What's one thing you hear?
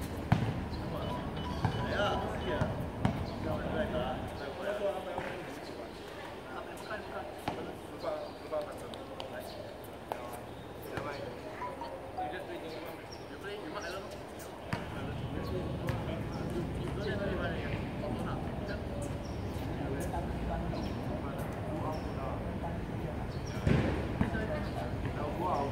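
Young men call out to each other during a game, heard from a distance outdoors.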